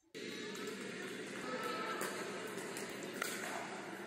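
A paddle strikes a ball with sharp pops in a large echoing hall.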